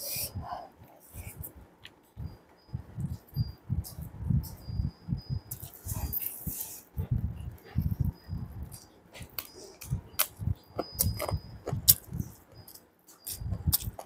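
A young woman chews food noisily with her mouth close to the microphone.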